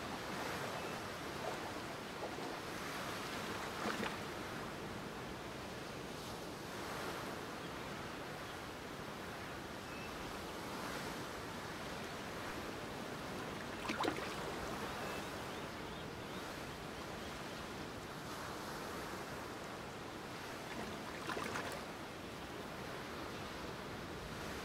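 Waves wash and break steadily in shallow water close by.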